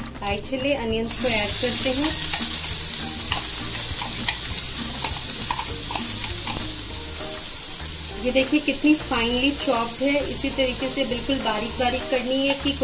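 Chopped onions sizzle loudly in hot oil.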